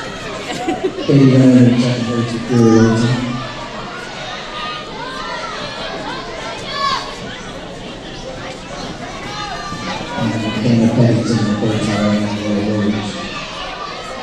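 A nearby spectator shouts encouragement.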